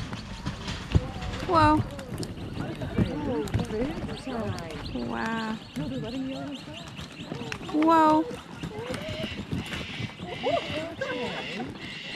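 Kangaroos hop with soft thumps on dry dirt.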